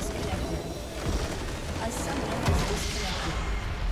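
A loud blast booms as a structure explodes in a game.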